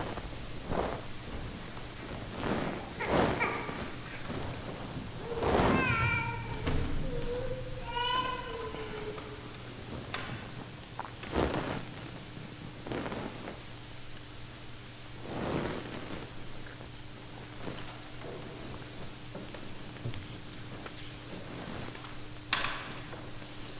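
Objects knock softly on a wooden table.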